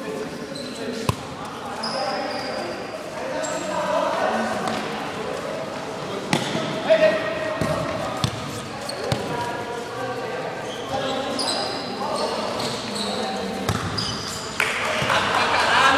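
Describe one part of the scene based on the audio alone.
Young men shout and call out to each other, echoing in a large hall.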